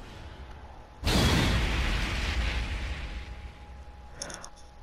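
A fiery blast booms and slowly fades.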